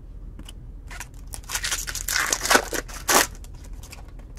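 A foil card wrapper crinkles and tears as it is ripped open.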